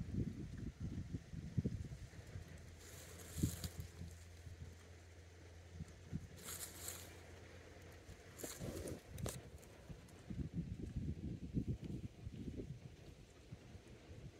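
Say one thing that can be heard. Wind gusts and rumbles across an open field.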